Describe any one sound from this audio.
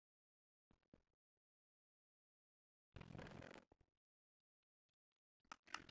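Taps click softly on a touch keyboard.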